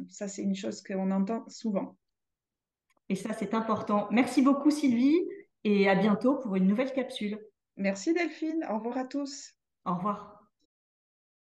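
A second woman speaks calmly over an online call.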